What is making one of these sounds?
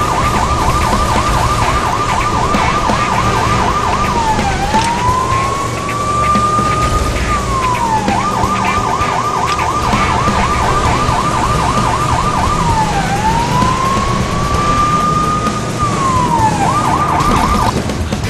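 A car engine roars at speed.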